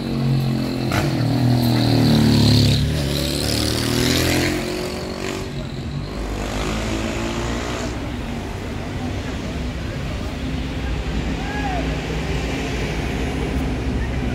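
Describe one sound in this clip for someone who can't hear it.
Traffic hums along a busy street.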